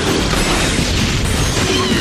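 Laser beams zap in a game battle.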